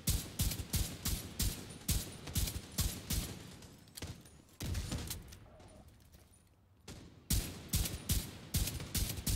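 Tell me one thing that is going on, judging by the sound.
A rifle fires in rapid bursts of sharp shots.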